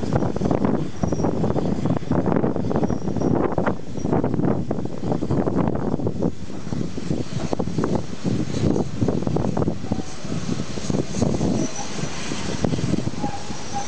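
Train wheels rumble and clatter over rails.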